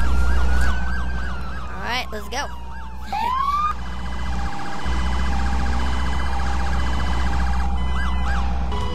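A police siren wails and yelps in rapid rising and falling sweeps.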